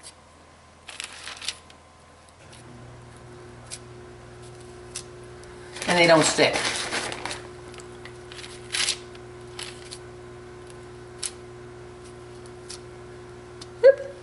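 A metal spatula scrapes lightly across baking paper.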